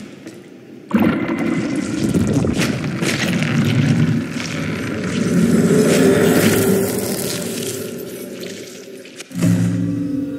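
A magical power surges with a loud, swelling rushing roar.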